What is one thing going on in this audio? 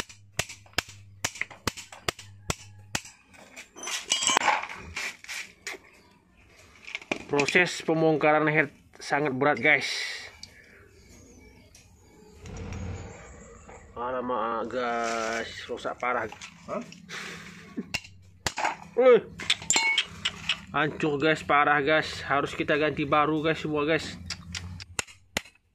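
Metal tools click and clink against each other.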